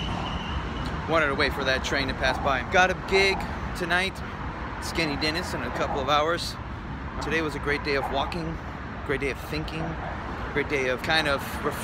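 A young man talks to the microphone close up.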